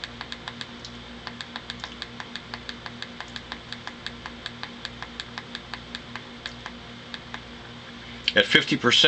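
A small push button clicks rapidly and repeatedly.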